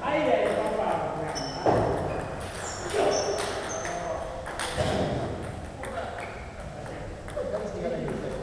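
A ping-pong ball clicks back and forth between paddles and the table.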